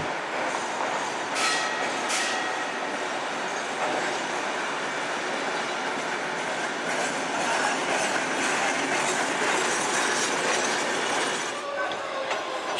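A streetcar approaches on rails and rumbles past close by.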